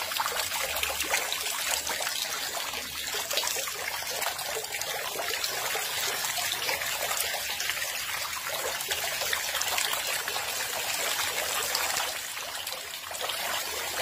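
Fish thrash and splash in shallow water.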